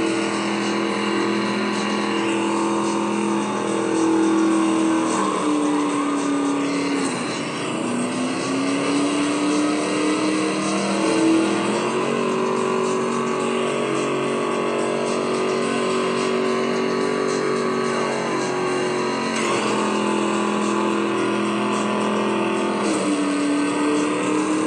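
A game car engine roars steadily, its pitch rising and falling as it shifts gears.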